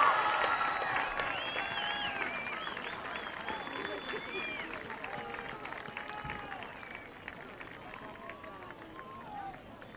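A large crowd of young men and women cheers and shouts outdoors, slowly fading.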